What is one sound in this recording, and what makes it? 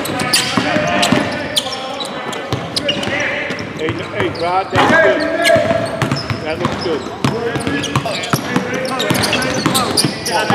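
Basketballs bounce with sharp thuds in a large echoing hall.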